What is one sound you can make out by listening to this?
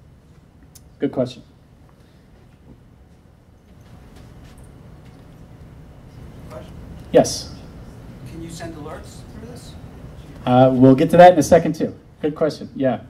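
A man speaks through a microphone in a large room, with pauses.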